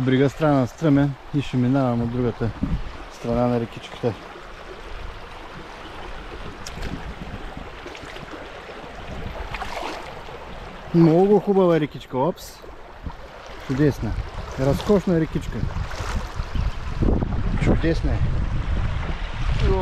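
A shallow stream trickles and burbles over stones.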